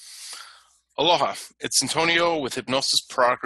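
A man speaks with animation, close to a headset microphone.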